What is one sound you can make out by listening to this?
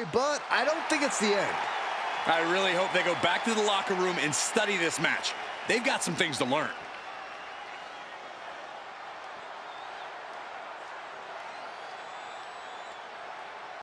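A large crowd cheers and roars in a big arena.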